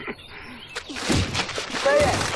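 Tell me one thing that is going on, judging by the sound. A fist strikes a man with a heavy thud.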